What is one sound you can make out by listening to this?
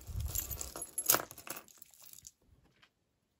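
Metal jewelry jingles and rattles as a hand rummages through it.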